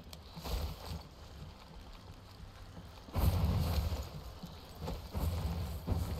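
Footsteps thump on a wooden bridge.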